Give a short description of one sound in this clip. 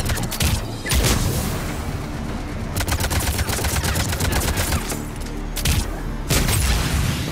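A rifle fires a heavy single shot.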